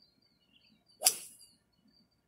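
A golf club strikes a ball with a sharp click.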